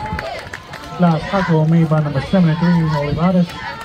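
A group of young girls chants a cheer together in a steady rhythm.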